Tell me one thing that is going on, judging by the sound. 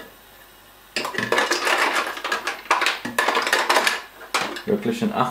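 Ice cubes rattle and clatter as a hand scoops them out.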